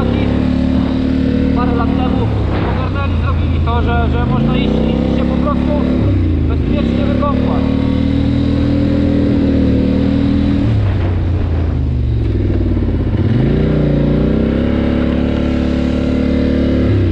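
A quad bike engine drones steadily, revving up and down.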